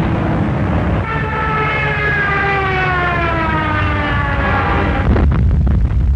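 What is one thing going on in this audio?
An aircraft engine whines in a steep dive, its pitch falling.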